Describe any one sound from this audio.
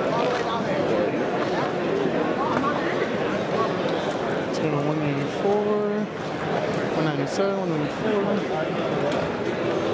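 A crowd of people chatters loudly in a large echoing hall.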